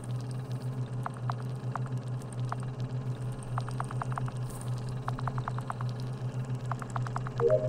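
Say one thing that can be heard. Short electronic blips sound in quick bursts.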